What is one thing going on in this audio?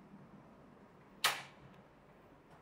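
A door opens and swings shut.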